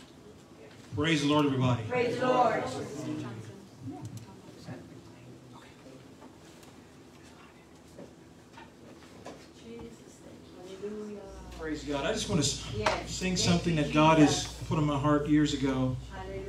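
A man speaks into a microphone over a loudspeaker in a large room with echo.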